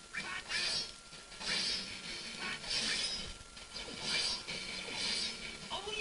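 Swords clash and slash repeatedly.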